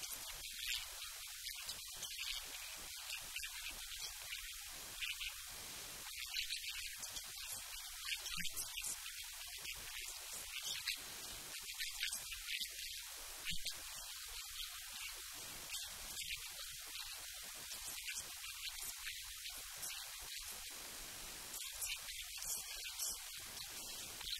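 A middle-aged woman speaks calmly, close to a microphone.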